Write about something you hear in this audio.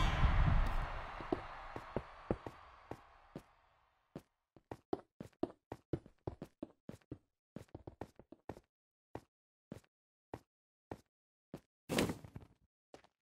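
Blocks are placed with quick, soft clicks, one after another.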